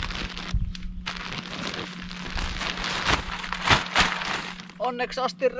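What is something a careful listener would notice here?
Granules pour out of a sack onto soil.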